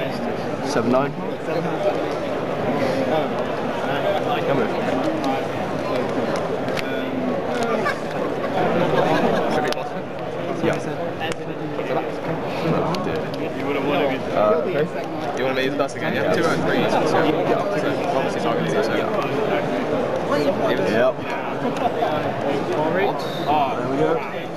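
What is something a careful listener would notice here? Playing cards slide and tap on a tabletop.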